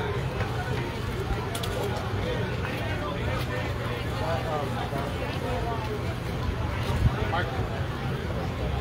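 A crowd of adults chatters and talks outdoors at a distance.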